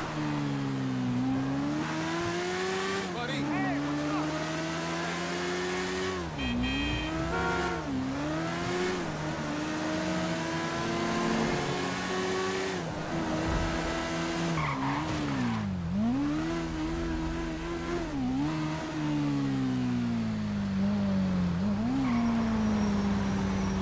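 A motorcycle engine roars, revving up and down as the bike rides along.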